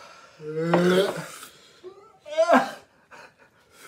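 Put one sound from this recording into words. A man groans and cries out loudly, close by.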